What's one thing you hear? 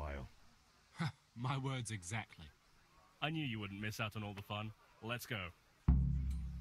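A second young man answers with animation.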